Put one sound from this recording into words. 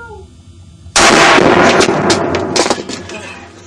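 A rifle fires a loud shot indoors.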